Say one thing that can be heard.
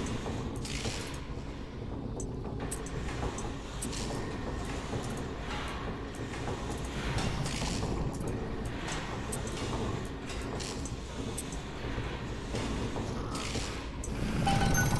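Game pieces click and clunk as they are swapped.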